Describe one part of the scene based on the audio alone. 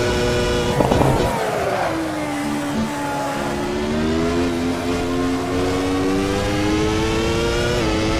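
A racing car engine drops in pitch as the car brakes hard, then climbs again.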